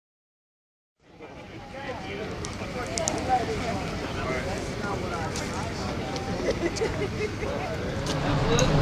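A crowd of men and women talk over one another outdoors.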